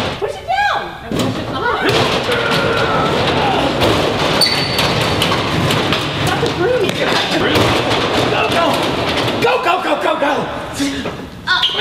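A large metal roller door rattles as it rolls up.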